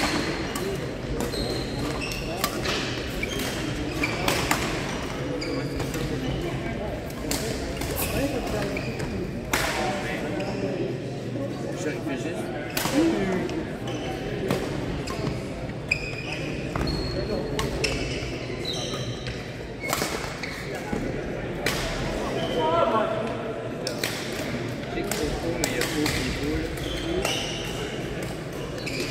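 Shoes squeak on a hard floor.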